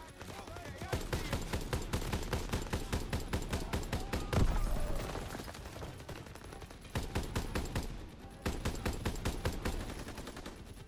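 A submachine gun fires in rapid bursts.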